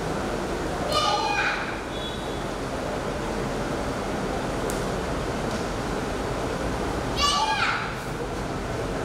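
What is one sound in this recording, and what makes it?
A young girl shouts sharply and loudly.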